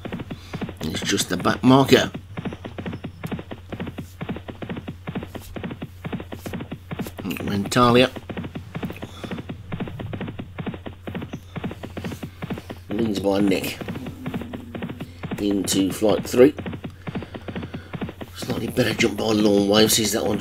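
Horses' hooves drum rapidly in a gallop.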